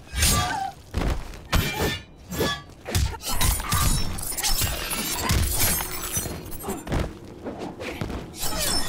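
Heavy punches and blows land with loud thuds.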